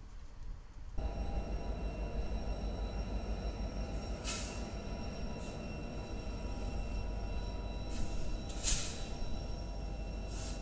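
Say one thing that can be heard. A diesel locomotive rumbles loudly as it pulls a train past.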